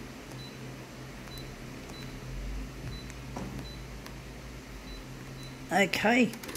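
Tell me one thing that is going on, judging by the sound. A touchscreen beeps softly at short intervals.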